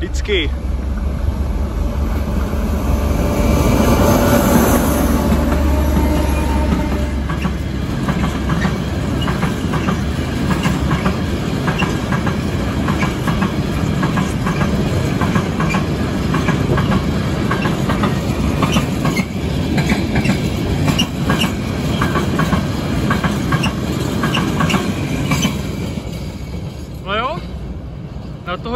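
A freight train rolls past with a steady roar.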